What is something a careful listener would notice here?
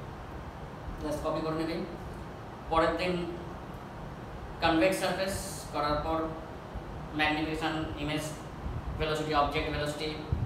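An adult man lectures, speaking close by.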